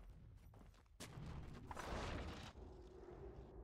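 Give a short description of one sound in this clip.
A magical spell crackles and whooshes in a short burst.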